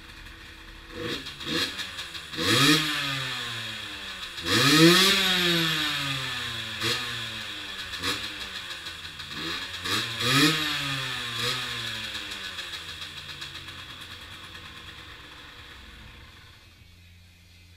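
A motorcycle engine sputters, revs briefly and dies away.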